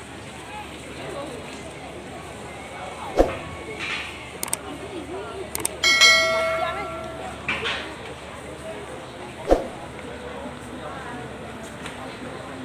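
A crowd of men and women chatter quietly nearby outdoors.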